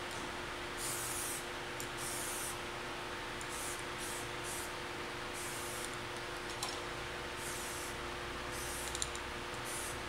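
An aerosol can hisses in short bursts of spray paint.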